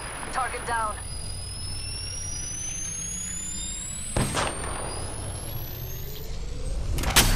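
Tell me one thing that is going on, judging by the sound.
A device charges up with a steadily rising electronic whine.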